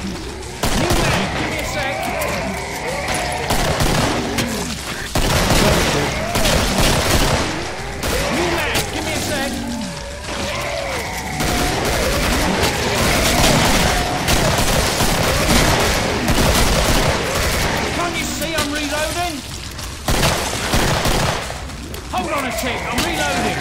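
Pistol shots crack in a narrow corridor.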